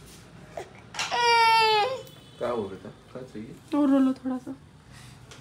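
A baby girl squeals and babbles happily close by.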